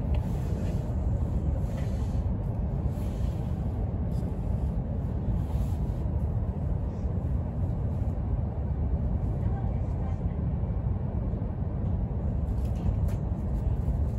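A train rumbles steadily with a deep, constant roar as it travels at speed.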